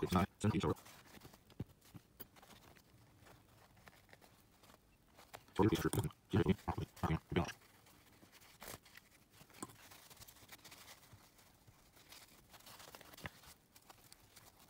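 Paper tissue rustles and crinkles between fingers.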